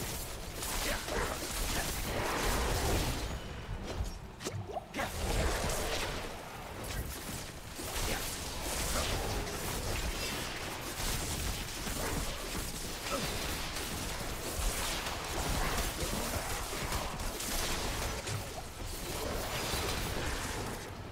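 Game sound effects of combat crackle and crash with electric zaps.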